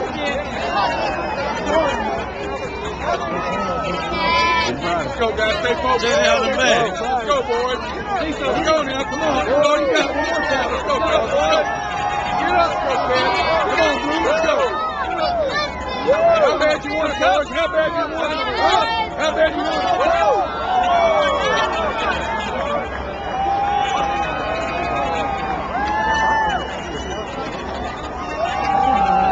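A large crowd of young men and women cheers and shouts close by, outdoors.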